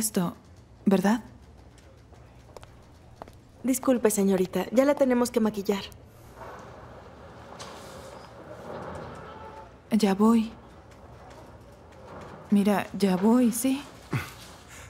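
A young woman speaks tensely and close by.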